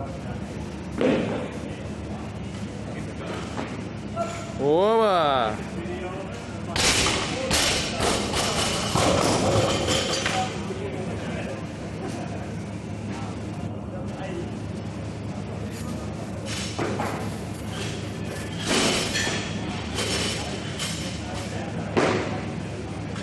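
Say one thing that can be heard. Weight plates clank as a barbell is lifted and set down.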